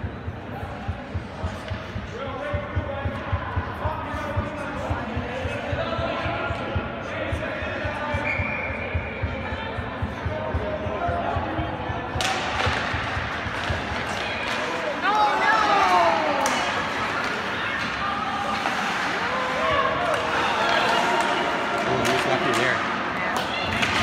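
Skates scrape and glide on ice in a large echoing rink.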